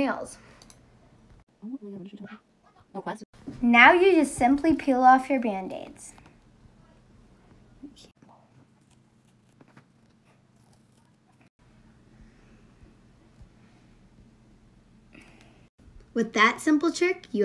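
A child talks calmly close by.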